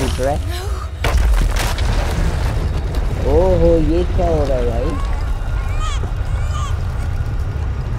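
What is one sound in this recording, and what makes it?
A huge explosion booms with a deep, rolling rumble.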